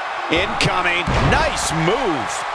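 A body slams heavily onto a wrestling ring mat with a thud.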